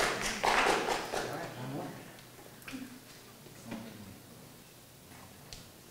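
Footsteps sound on a wooden stage.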